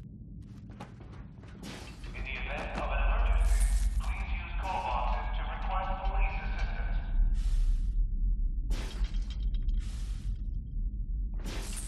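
Footsteps crunch on a littered floor.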